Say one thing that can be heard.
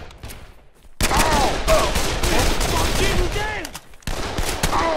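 A gun fires loud, rapid shots.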